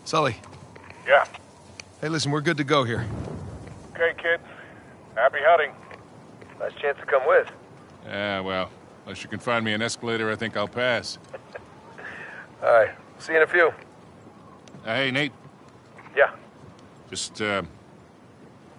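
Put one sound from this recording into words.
A young man speaks calmly over a radio.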